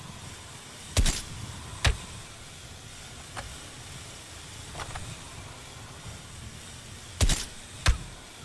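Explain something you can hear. A rifle fires sharp, loud single shots.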